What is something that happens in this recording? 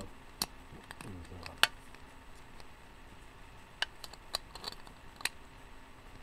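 A metal can clinks and crinkles in a hand.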